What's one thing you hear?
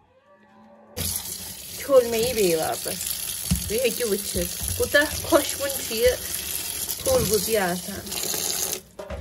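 Tap water runs and splashes steadily.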